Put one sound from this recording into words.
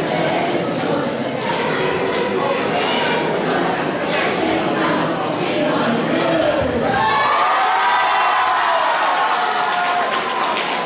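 A group of young children sing together in a large hall.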